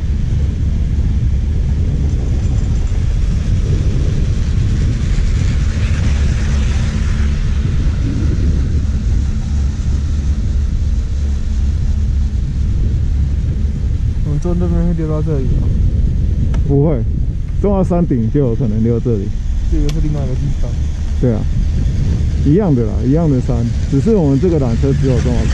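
Wind rushes and rumbles loudly past close by.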